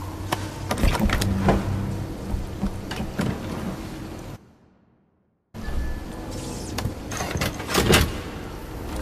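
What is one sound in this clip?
A heavy carriage door clunks.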